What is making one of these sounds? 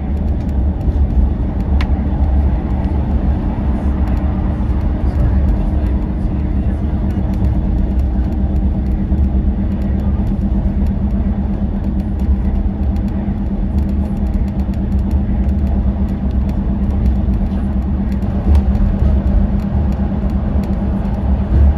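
A vehicle's engine drones steadily as it drives.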